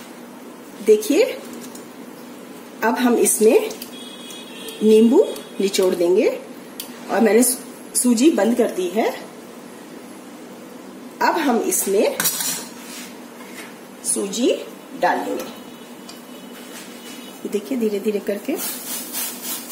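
Soup simmers gently in a pan.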